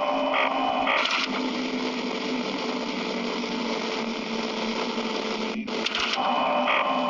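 An electric desk fan whirs.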